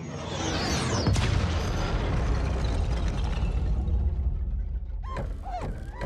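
A huge explosion booms and rumbles deeply.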